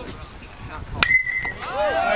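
A metal bat cracks against a ball.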